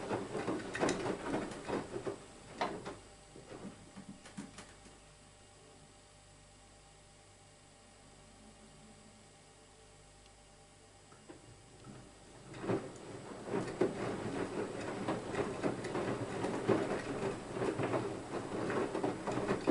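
Water sloshes and splashes inside a turning washing machine drum.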